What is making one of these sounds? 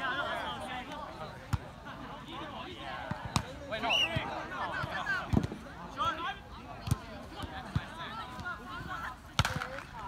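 Several men and women call out and chatter outdoors.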